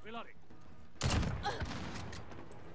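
A rifle fires a single loud, booming shot.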